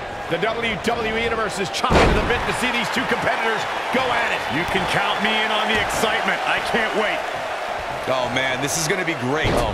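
Heavy thuds sound as wrestlers slam onto a ring mat.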